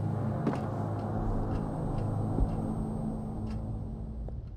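Footsteps tread on a hard floor at a steady pace.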